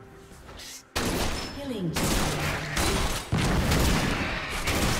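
Sword strikes and spell effects clash in a fast fight.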